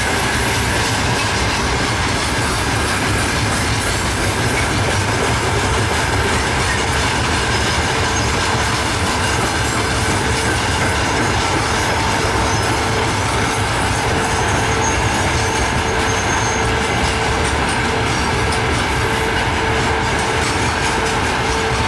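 An electric locomotive hauls a freight train past with a steady, heavy rumble.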